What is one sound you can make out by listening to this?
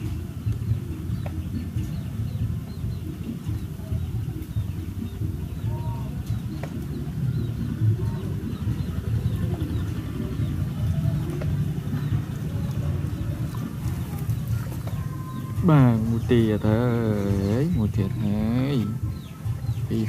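Water laps gently against the side of a small boat.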